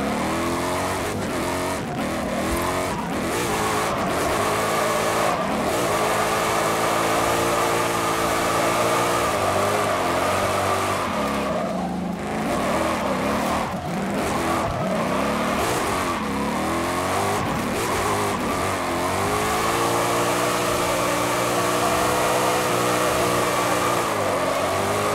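A truck engine roars and revs up and down throughout.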